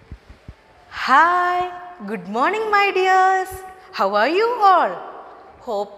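A young woman speaks cheerfully and in a sing-song voice close to a microphone.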